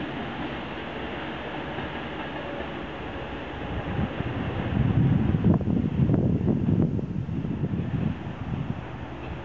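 A locomotive rumbles past on the tracks.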